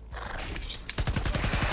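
Rapid gunshots fire in quick succession.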